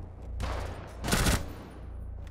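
A rifle fires a short, sharp burst close by.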